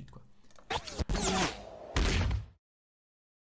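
A gun fires a loud shot.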